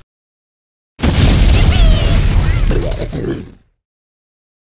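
An explosion booms with a loud roar.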